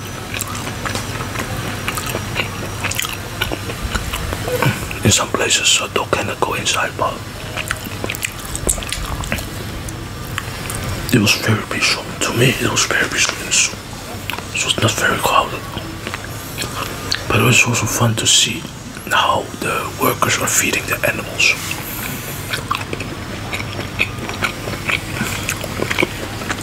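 A man chews food loudly and wetly, close to a microphone.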